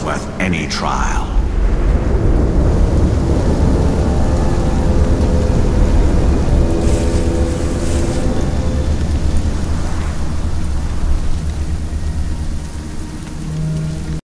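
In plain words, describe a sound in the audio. Footsteps crunch and squelch on wet ground.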